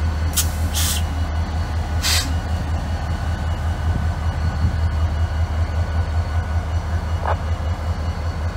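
A diesel locomotive engine rumbles low and steadily as a train rolls past.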